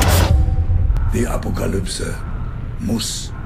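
A young man exclaims with alarm.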